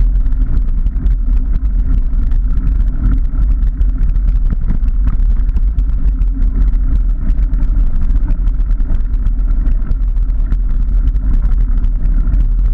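Bicycle tyres roll and crunch over a gravel path.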